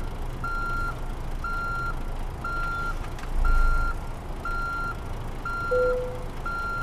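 A truck engine idles with a low rumble.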